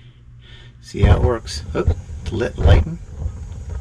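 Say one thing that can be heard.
A gas fire's igniter clicks several times.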